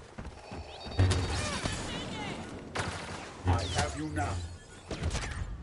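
Laser blasts crackle and sizzle in short bursts.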